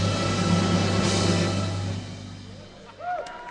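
A small band plays music in a large echoing hall.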